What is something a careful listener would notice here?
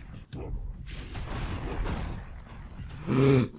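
Gunfire rattles in quick bursts.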